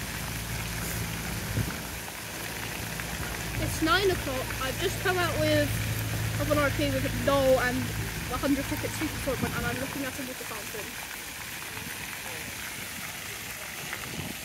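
Fountain jets splash and patter softly outdoors.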